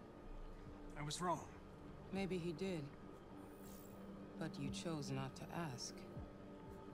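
A middle-aged woman speaks calmly and coldly.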